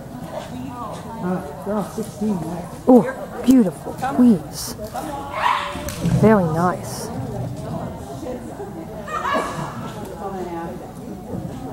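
A woman calls out commands to a dog with animation, echoing in a large hall.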